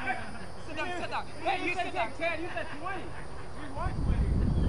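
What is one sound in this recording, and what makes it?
Men talk at a distance outdoors.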